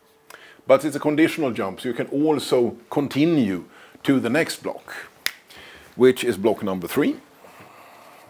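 A man speaks calmly and clearly, as if lecturing, close by.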